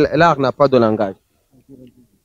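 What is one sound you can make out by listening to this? A young man asks questions with animation into a microphone.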